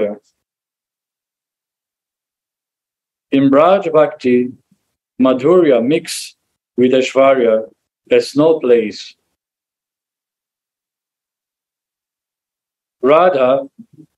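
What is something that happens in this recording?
A man speaks calmly in short phrases with pauses, heard through a microphone on an online call.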